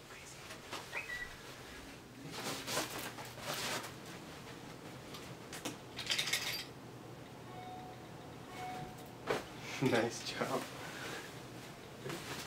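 A bed cover rustles as a cat pounces and tumbles on it.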